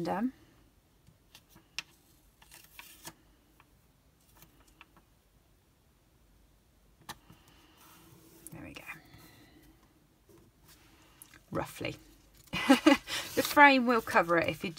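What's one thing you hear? Paper rustles and crinkles.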